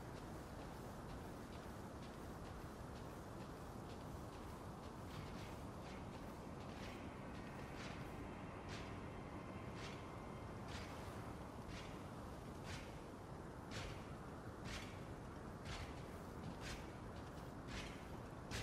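Footsteps tread steadily on stone.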